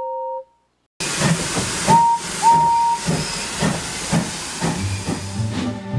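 A steam locomotive chugs along with hissing steam.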